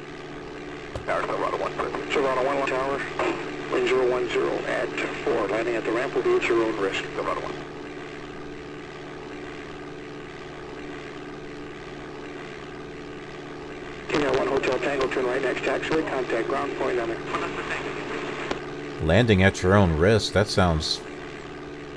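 A middle-aged man talks calmly into a headset microphone.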